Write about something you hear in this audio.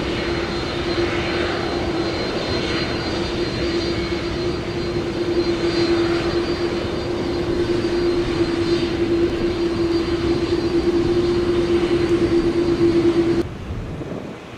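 A jet airliner's engines whine loudly as it taxis close by.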